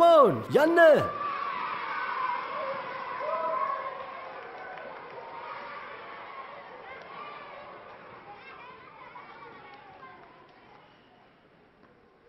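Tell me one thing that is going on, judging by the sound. Many children chatter and talk at once, slowly fading.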